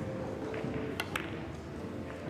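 Pool balls knock together with a hard clack.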